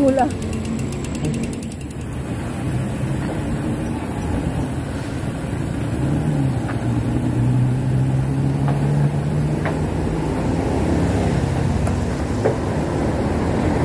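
A bicycle's tyres roll over rough concrete with wind rushing past.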